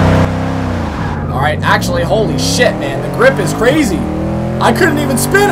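A race car engine roars and climbs in pitch as it speeds up through the gears.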